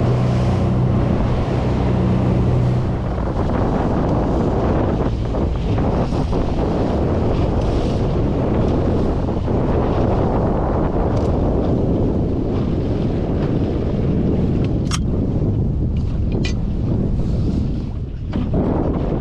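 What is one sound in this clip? A boat motor drones steadily.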